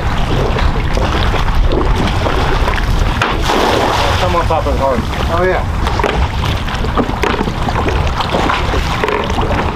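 Small waves lap against wooden pilings.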